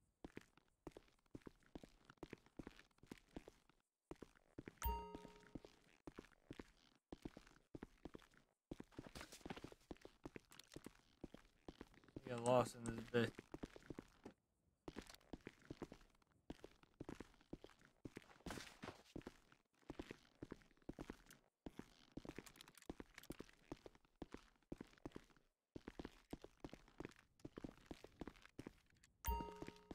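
Footsteps crunch steadily on rocky ground.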